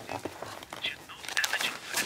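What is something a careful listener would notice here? Papers rustle as a hand shuffles through them.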